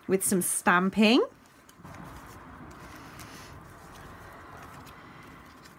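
Paper pages rustle softly as they are handled and turned.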